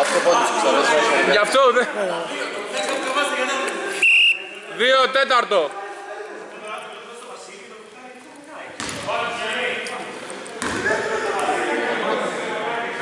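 Men talk and call out loudly in a large echoing hall.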